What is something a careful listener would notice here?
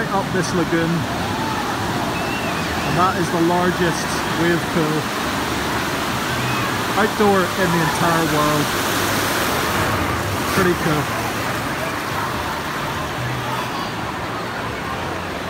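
A crowd of people chatters and shouts outdoors.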